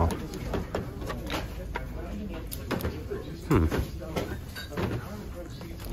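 A small wooden box knocks lightly against a shelf as it is picked up.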